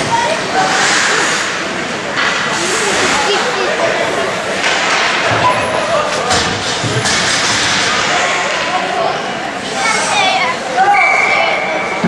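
Young men talk and call out across the rink.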